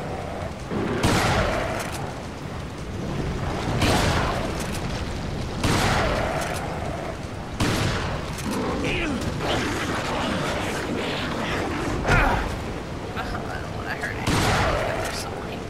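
A shotgun fires loud booming blasts, several times.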